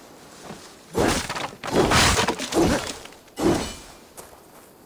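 Wooden crates smash and splinter.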